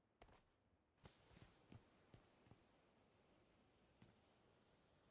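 Gunshots crack in short, separate bursts.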